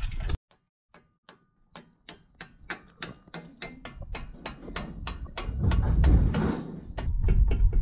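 A chain hoist clicks rapidly as its chain is pulled.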